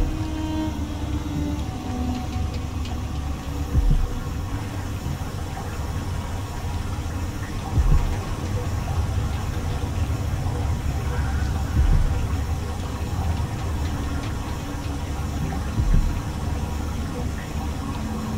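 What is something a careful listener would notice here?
A large machine rumbles with a low, steady drone.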